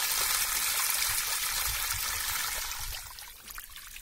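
Fish splash and thrash loudly in shallow water.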